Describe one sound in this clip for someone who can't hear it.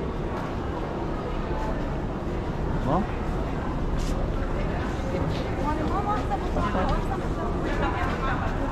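Footsteps shuffle on a hard floor in a large echoing hall.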